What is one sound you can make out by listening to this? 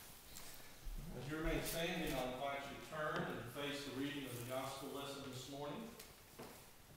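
A man speaks nearby in a calm voice in an echoing room.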